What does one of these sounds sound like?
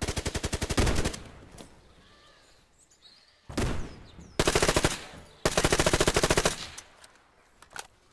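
Automatic rifle fire rattles in bursts.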